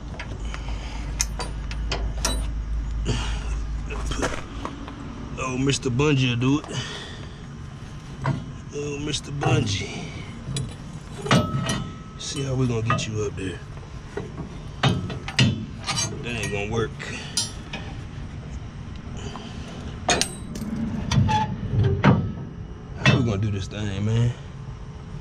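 Metal clips and rods clink and scrape close by.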